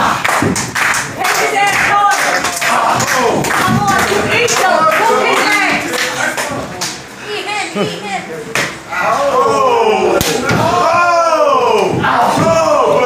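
Spectators shout and cheer in an echoing hall.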